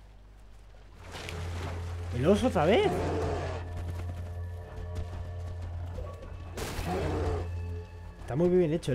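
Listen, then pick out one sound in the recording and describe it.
A large bear growls.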